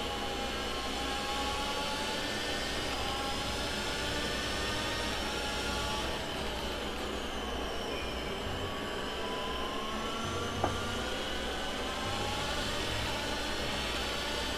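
A racing car engine screams at high revs, rising and falling as gears shift.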